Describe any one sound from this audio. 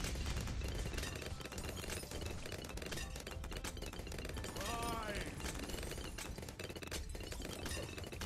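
Balloons pop rapidly and steadily.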